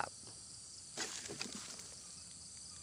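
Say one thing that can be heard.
Water splashes as something is tipped into a pond.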